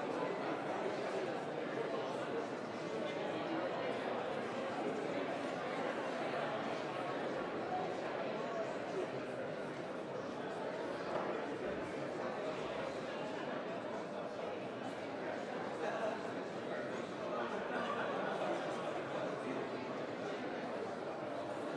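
Many men and women chatter at once in a large echoing hall.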